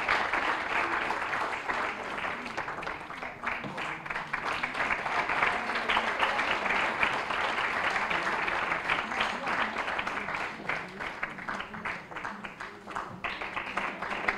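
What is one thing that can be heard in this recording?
A large crowd applauds steadily in an echoing hall.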